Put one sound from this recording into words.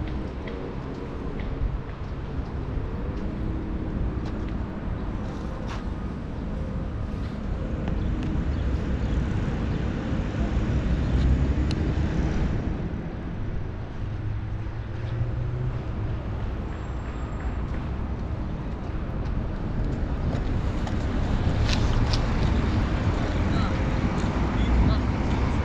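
Wind rumbles steadily against a microphone outdoors.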